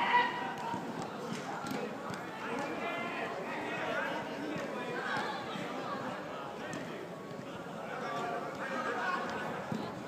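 Children shout and call out during a game.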